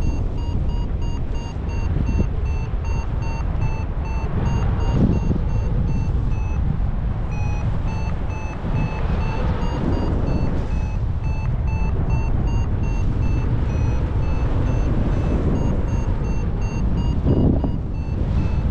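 An electronic flight instrument beeps in quick, steady pulses throughout.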